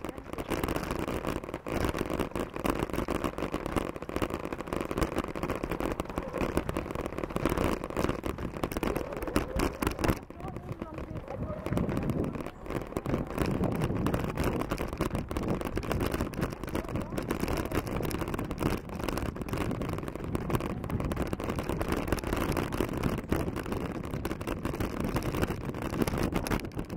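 Bicycle tyres crunch and rattle over a bumpy gravel track.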